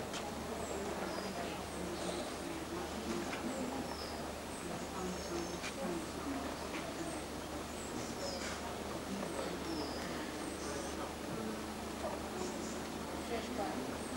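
Men chat quietly some distance away.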